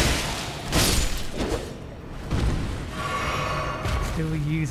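A large monster growls and roars.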